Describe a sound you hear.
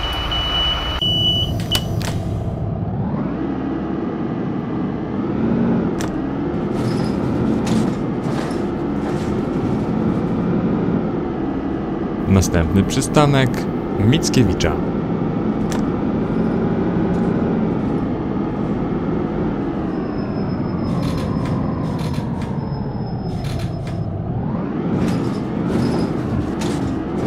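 A bus engine hums, rising in pitch as the bus speeds up and falling as it slows down.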